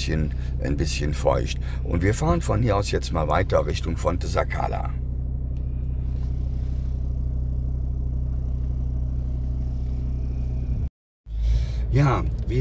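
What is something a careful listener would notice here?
A car engine hums steadily at idle, heard from inside the car.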